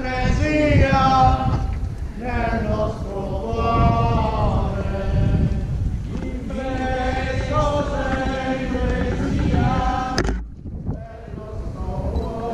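A group of people sings a slow chant together outdoors.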